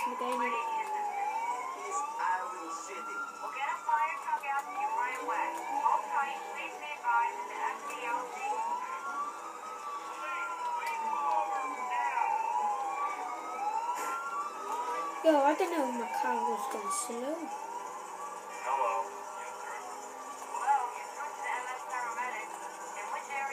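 A video game car engine roars through small speakers.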